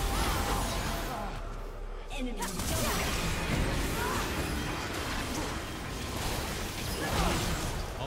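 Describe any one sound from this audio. Game spell effects crackle and boom in a fight.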